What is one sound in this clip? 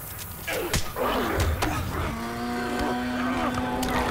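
A young man exclaims into a headset microphone.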